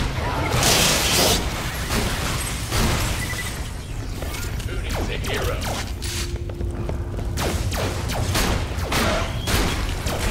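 Rapid gunfire bursts out in quick volleys.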